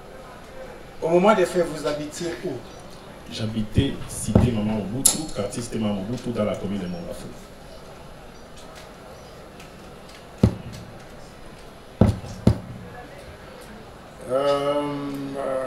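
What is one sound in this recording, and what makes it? A man speaks slowly and formally into a microphone over a loudspeaker, with pauses.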